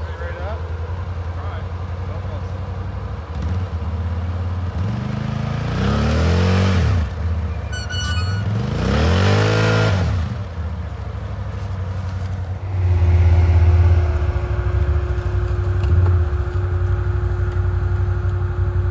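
An all-terrain vehicle engine idles steadily nearby.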